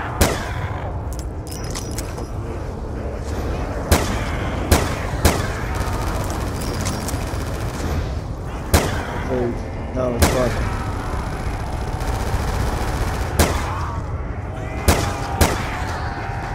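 Loud gunshots fire one at a time.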